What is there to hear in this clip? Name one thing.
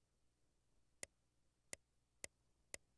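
Short interface clicks sound several times in quick succession.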